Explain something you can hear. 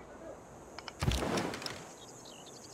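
A deep magical whoosh booms out once.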